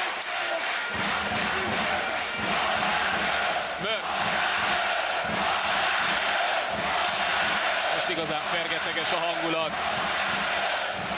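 A large crowd cheers and chants in a big echoing arena.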